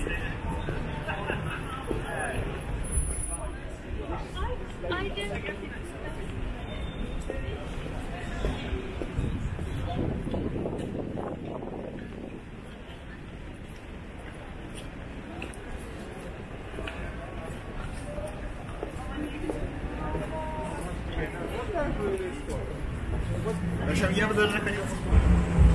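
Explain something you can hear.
Footsteps tap on pavement in a busy street outdoors.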